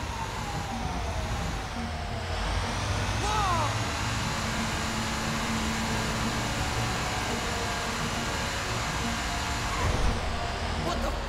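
A train's rumble echoes loudly inside a tunnel.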